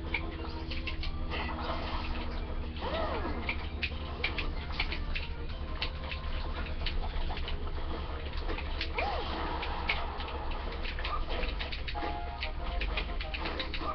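Upbeat video game music plays through a small speaker.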